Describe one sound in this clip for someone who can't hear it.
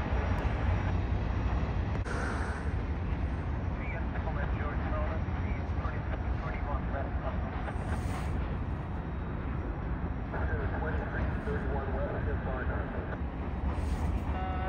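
A freight train rumbles along the tracks.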